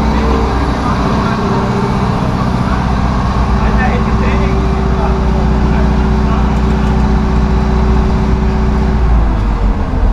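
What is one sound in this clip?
An excavator engine rumbles and drones nearby.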